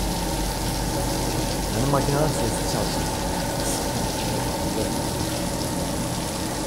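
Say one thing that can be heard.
Water splashes and churns beneath a machine.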